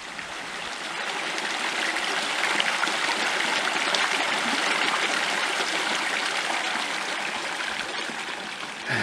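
A small stream gurgles and splashes over rocks.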